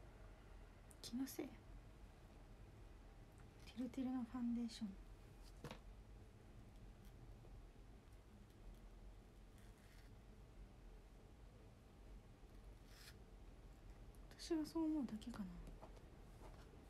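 A young woman speaks briefly and softly, close by.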